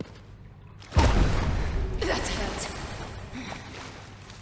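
A heavy body crashes down onto the floor with a loud rumbling thud.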